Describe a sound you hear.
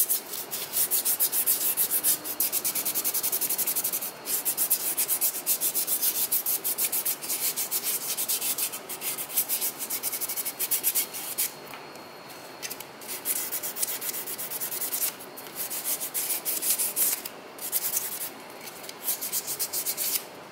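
Plastic parts click and rattle close by.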